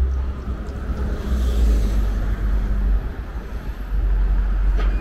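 A bus engine rumbles nearby.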